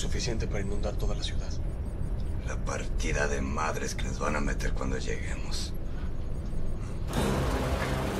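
A man speaks in a low, tense voice nearby.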